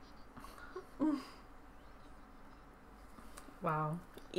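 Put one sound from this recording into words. A young woman laughs softly close by.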